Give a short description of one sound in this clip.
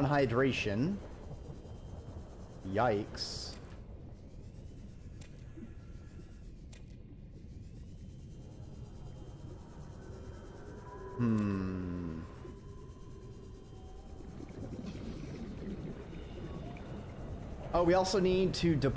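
A small underwater craft hums steadily as it glides.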